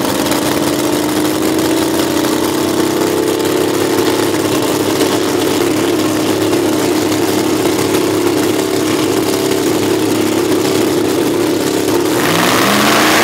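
A supercharged V8 drag car idles.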